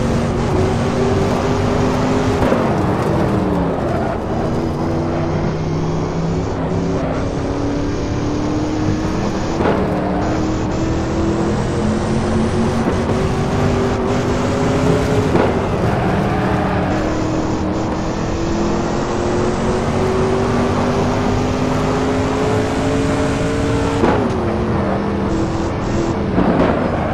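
A racing car engine roars loudly, rising in pitch through each gear and dropping sharply at each gear change.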